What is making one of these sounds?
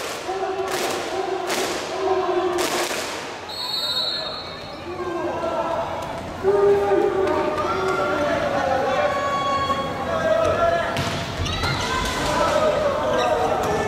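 A crowd chants and cheers loudly in a large echoing hall.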